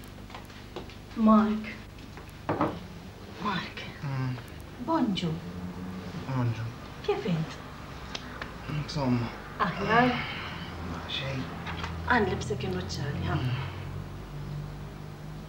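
A woman speaks softly and tenderly, close by.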